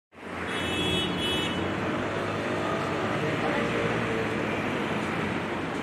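Busy street noise murmurs outdoors.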